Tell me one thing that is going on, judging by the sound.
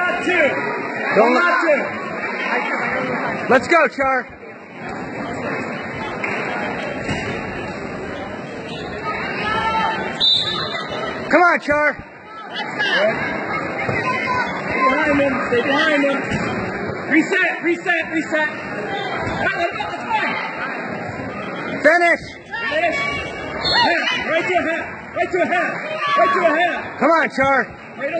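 A crowd of spectators shouts and cheers loudly in a large echoing gym.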